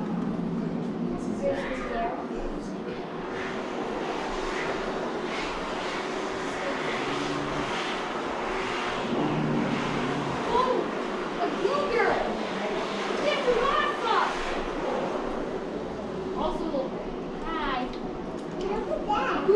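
Visitors murmur quietly in the background of an indoor hall.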